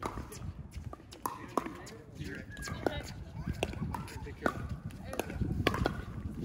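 Pickleball paddles pop sharply against a ball, back and forth.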